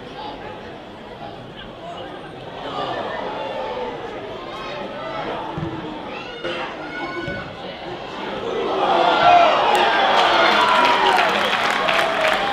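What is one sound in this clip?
Football players shout to each other outdoors.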